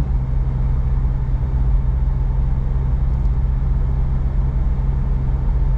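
A car engine hums steadily with a low road rumble from inside the cabin.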